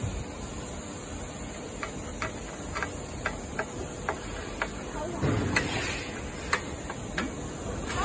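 A screwdriver turns screws into metal with small clicks.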